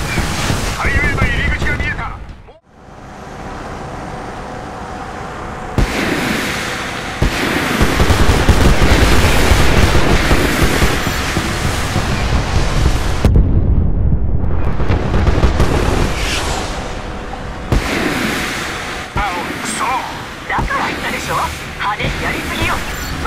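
A helicopter's rotor thumps throughout.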